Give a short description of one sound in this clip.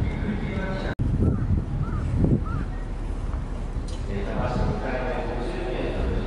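Wind rumbles steadily outdoors in a large open space.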